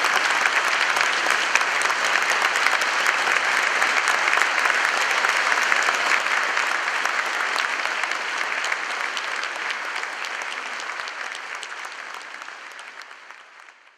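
A large audience applauds in an echoing hall, slowly fading.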